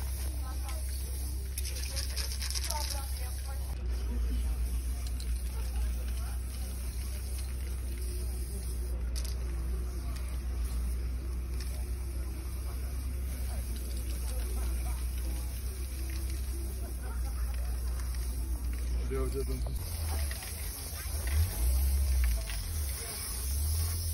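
Spray cans hiss in short bursts.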